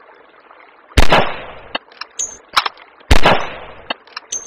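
A rifle fires two loud shots.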